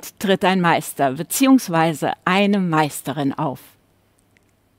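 A middle-aged woman speaks calmly and warmly, close to a microphone.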